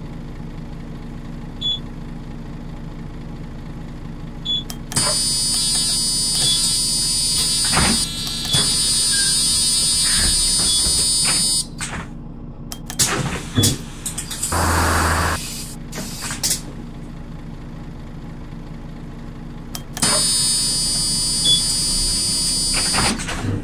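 A bus engine idles with a steady low hum.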